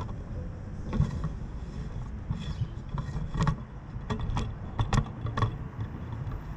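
Clicks and knocks sound as the car roof locks in place.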